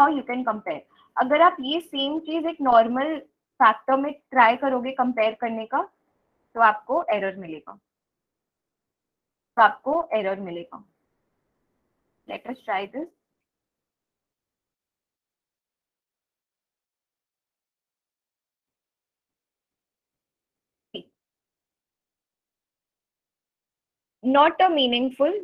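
A young woman speaks calmly into a microphone, in short bursts with pauses.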